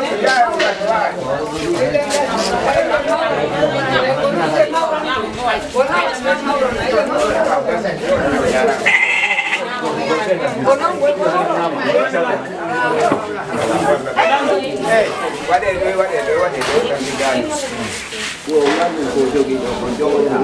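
A crowd of women and men talk and chatter all around, close by.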